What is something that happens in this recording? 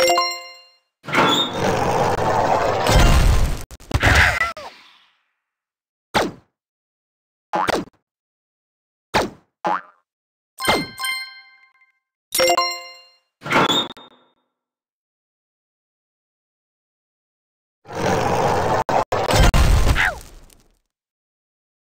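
Bursts of whooshing game noise play.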